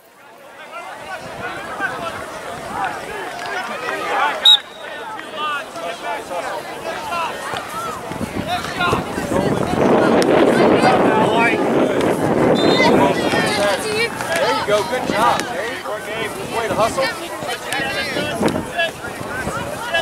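Young players call out to each other across an open field.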